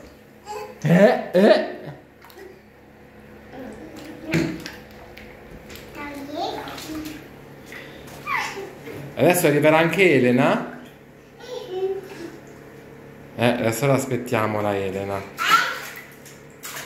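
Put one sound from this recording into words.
Water splashes in a bathtub.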